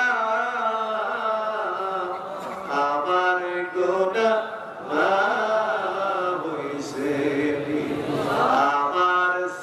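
A man chants loudly in a long, sustained melody through a microphone and loudspeakers.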